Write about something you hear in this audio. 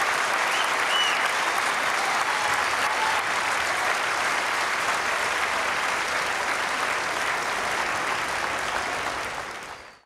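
A large crowd applauds loudly in a big echoing hall, fading away at the end.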